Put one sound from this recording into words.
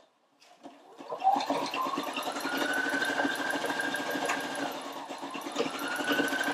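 A sewing machine whirs and hums steadily.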